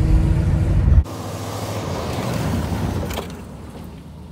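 A car engine revs loudly outdoors as the car skids on grass.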